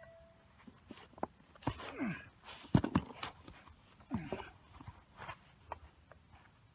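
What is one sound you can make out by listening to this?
Clothing rustles as a man gets down onto the ground.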